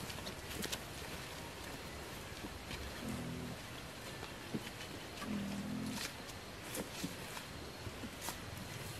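A rubber tyre rolls and bumps over a dirt path.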